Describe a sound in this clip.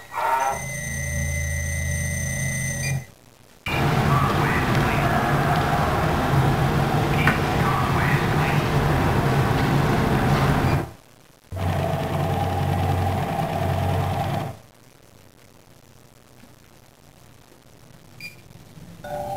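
A barcode scanner beeps.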